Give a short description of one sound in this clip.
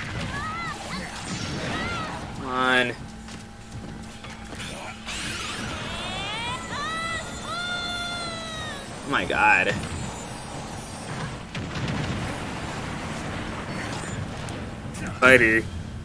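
Video game fighting effects whoosh, chime and bleep.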